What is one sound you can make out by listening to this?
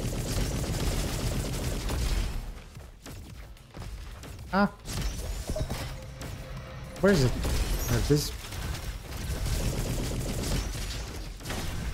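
Explosions boom in a video game.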